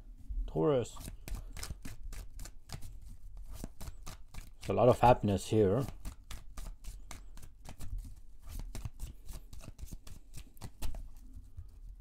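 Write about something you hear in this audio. Playing cards riffle and flick rapidly as they are shuffled.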